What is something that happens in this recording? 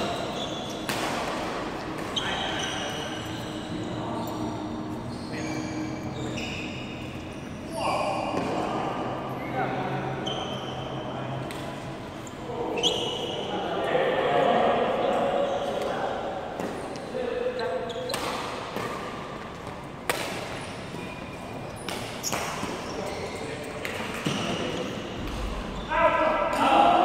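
Badminton rackets smack a shuttlecock in quick rallies.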